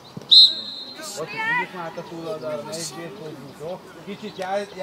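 Young boys shout and call out across an open pitch.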